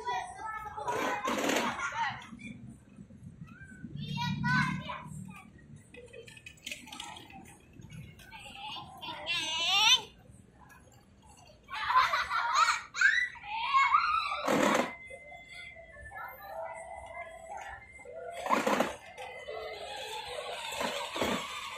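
Children shout and chatter nearby.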